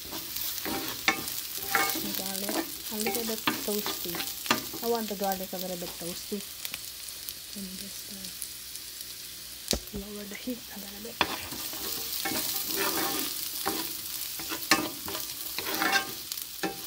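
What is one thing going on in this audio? A wooden spatula scrapes and knocks against a metal pan.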